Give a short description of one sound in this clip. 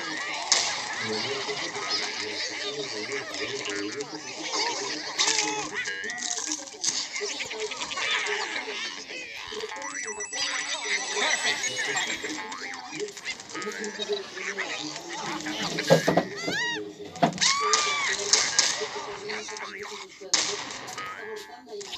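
Lively electronic game music plays throughout.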